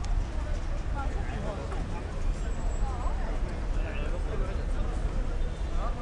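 Voices of passers-by murmur nearby.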